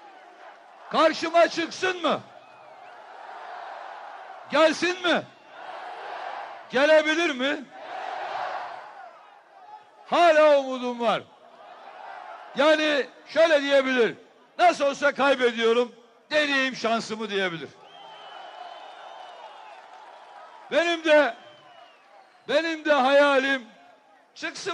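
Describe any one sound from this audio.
A man speaks forcefully into a microphone over a loudspeaker, echoing outdoors.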